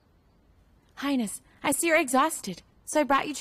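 A young woman speaks brightly, close by.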